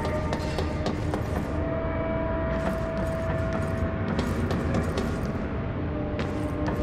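Footsteps clang on metal stairs and walkways.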